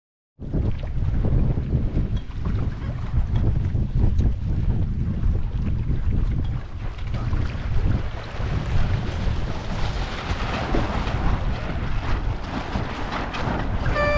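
Wind rumbles loudly across the microphone outdoors.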